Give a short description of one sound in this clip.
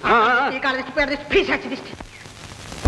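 A woman sings with a wavering voice.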